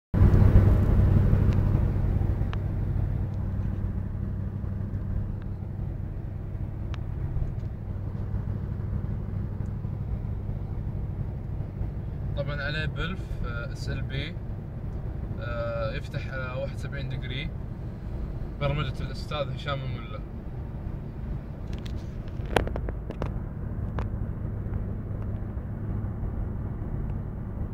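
A car engine hums steadily while driving, loudest at first and then settling.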